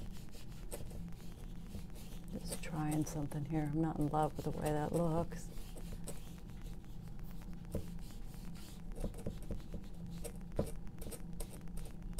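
A tissue dabs and rubs softly against a canvas.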